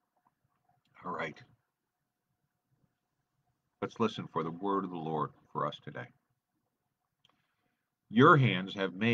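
An older man speaks calmly and close, with pauses, as if over an online call.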